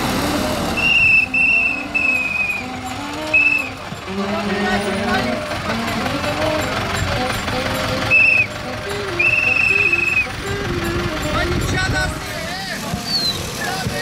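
People shout and chatter from a passing trailer.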